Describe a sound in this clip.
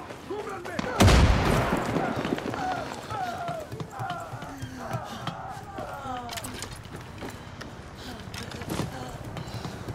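Footsteps clank on metal ladder rungs during a climb.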